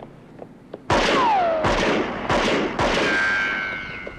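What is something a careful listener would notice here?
Rifle shots ring out in quick succession, with echoing ricochets.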